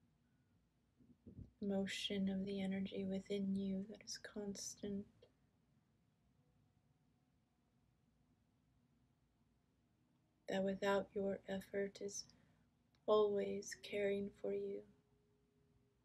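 A middle-aged woman speaks calmly and slowly close to the microphone, with long pauses.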